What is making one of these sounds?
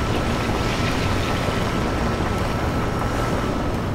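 A vehicle breaks apart with a crash and clatter of pieces.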